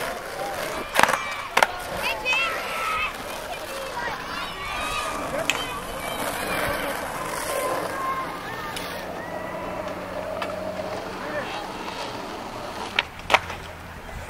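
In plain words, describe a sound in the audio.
Skateboards clack sharply against the ground.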